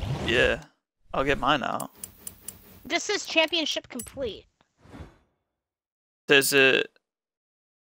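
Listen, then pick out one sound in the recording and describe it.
Menu clicks and chimes sound in quick bursts.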